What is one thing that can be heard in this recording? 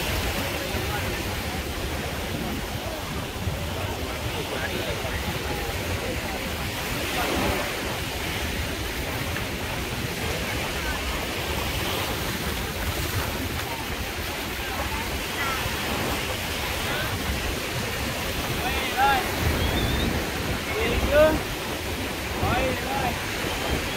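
Many people chatter and call out across a busy beach outdoors.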